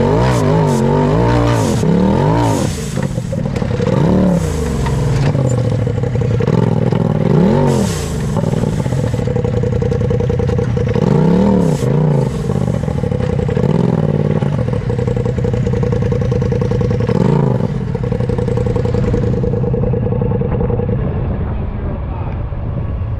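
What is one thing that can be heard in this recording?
Tyres crunch and grind over rocks and dirt.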